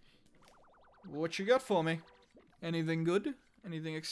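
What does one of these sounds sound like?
Tiny cartoon creatures chirp in a high squeaky chorus.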